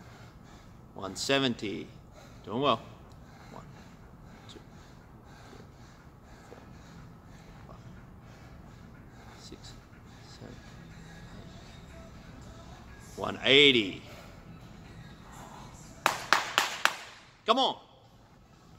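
A young man grunts loudly with effort.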